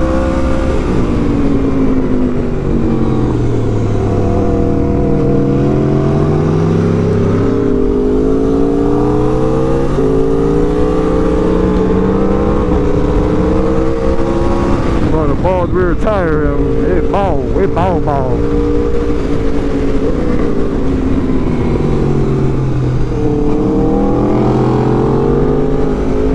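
A motorcycle engine roars close by, rising and falling in pitch as it speeds up and slows down.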